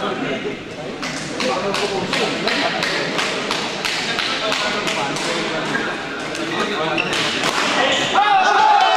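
A shuttlecock is struck sharply by rackets in quick exchanges.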